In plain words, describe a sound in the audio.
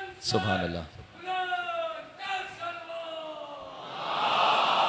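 A man speaks with feeling into a microphone, heard through loudspeakers in an echoing hall.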